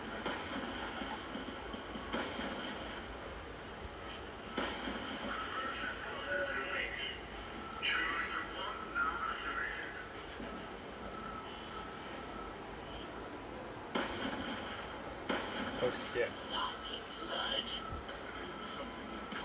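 Gunfire and game sounds play from a television's speakers.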